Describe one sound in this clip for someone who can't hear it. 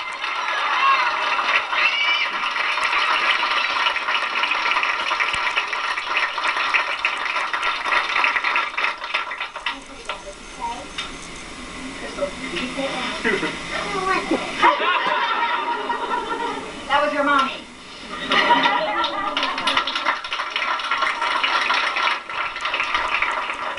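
An audience claps along.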